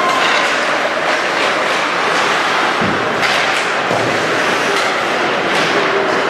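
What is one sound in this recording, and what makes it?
Skates scrape and hiss across ice.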